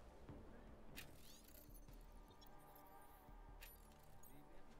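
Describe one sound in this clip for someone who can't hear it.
A short electronic chime sounds twice.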